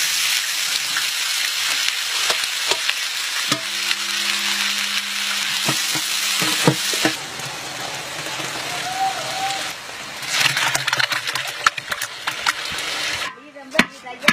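Oil sizzles and hisses loudly in a large pot.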